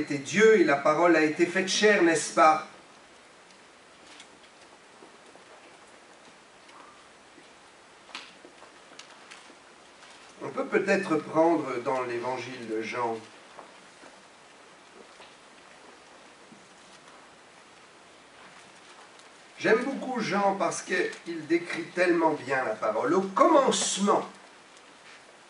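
A middle-aged man speaks calmly into a microphone, with long pauses between phrases.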